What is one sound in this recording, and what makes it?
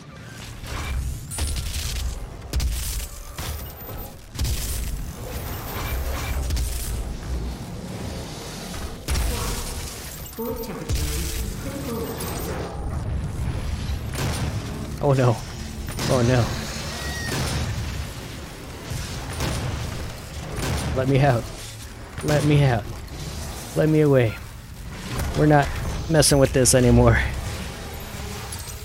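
Heavy guns fire in loud bursts.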